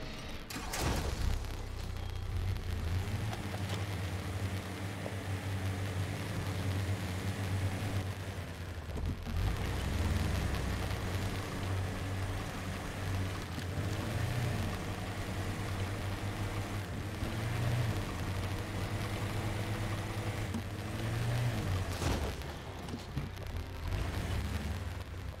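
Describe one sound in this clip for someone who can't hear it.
A truck engine rumbles and revs as it crawls over rough ground.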